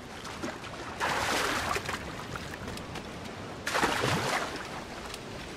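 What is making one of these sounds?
Feet splash loudly through shallow water.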